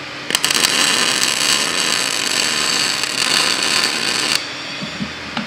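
An arc welder crackles and sizzles loudly.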